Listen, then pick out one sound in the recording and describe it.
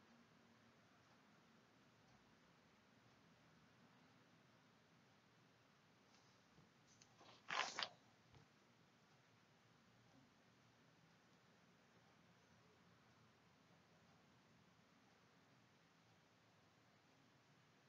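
A brush swishes softly across paper.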